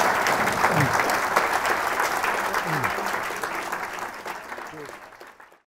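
An audience applauds loudly in a room, the clapping slowly fading.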